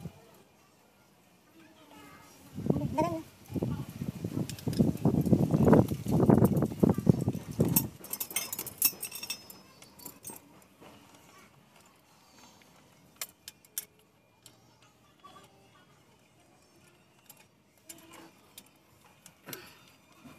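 A wrench ratchets as a bolt is turned.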